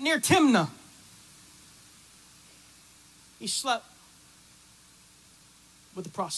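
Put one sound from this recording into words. A man speaks with emphasis through a microphone, in short bursts with long pauses.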